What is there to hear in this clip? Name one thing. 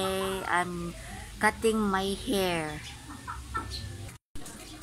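A young boy speaks close by with animation.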